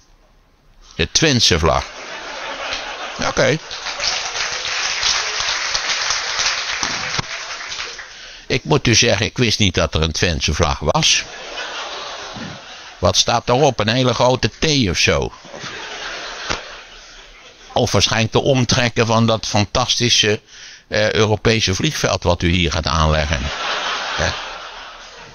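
An elderly man talks with animation through a microphone in a large hall.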